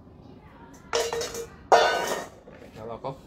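A metal bowl clanks down on a hard floor.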